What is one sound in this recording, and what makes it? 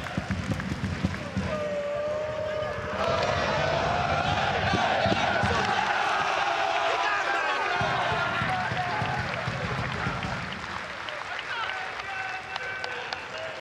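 A crowd cheers and chants loudly outdoors.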